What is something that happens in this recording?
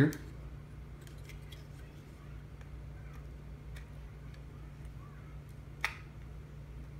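Small plastic parts click and tap together as they are fitted.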